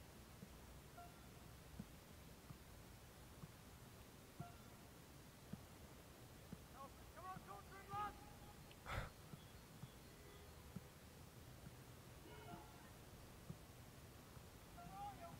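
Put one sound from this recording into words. A football is kicked repeatedly with short dull thuds.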